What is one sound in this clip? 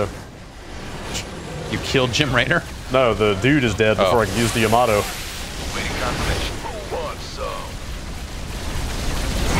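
Laser weapons fire with a steady crackling buzz.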